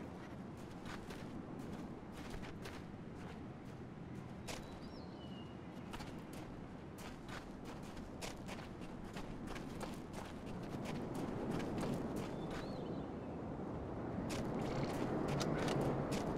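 Footsteps crunch on grass at a steady walking pace.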